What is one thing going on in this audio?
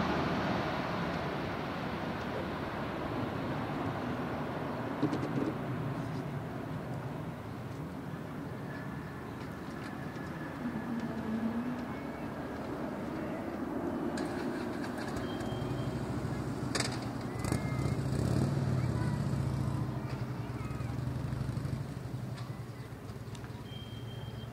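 A twin-engine jet airliner roars as it comes in to land and rolls down the runway.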